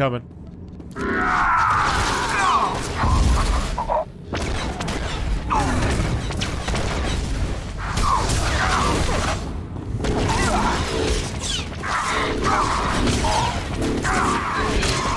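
Lightsabers hum and clash in a fight.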